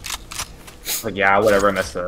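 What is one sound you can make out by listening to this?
A rifle is drawn with a short metallic clack.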